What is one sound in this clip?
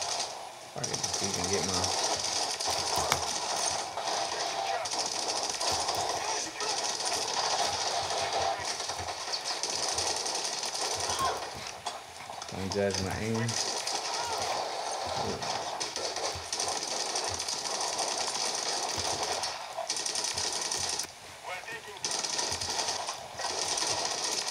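Gunfire and explosions from a shooting game play through small speakers.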